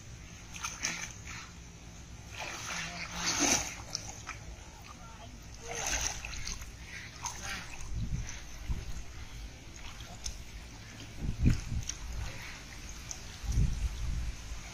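Water splashes as a man pulls a net through a pond.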